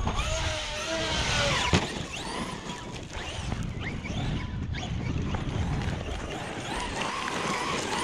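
A small electric motor whines, revving up and down.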